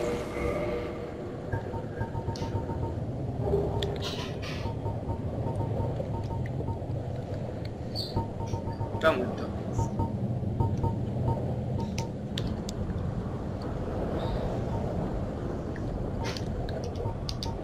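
Soft menu clicks tick every few seconds.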